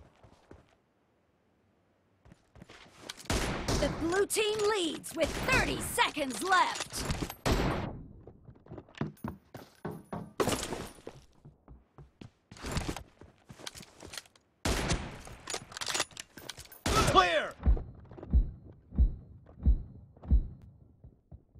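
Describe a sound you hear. Rifle shots ring out sharply, one at a time.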